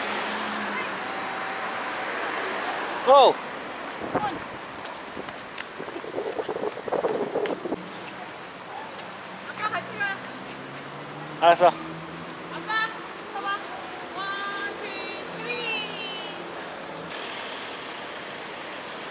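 Traffic hums and cars pass nearby outdoors.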